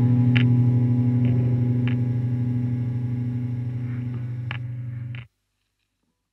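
Electric guitars ring out on a loud held chord that slowly fades, then cut off.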